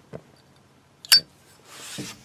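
A metal lighter lid snaps shut with a sharp click.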